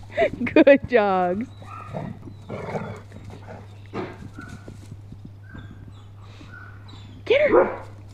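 A dog barks and yelps sharply.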